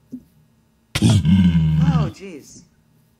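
A zombie pig creature grunts loudly.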